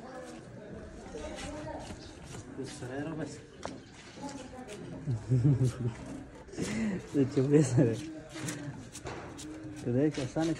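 A knife slices and scrapes through hide.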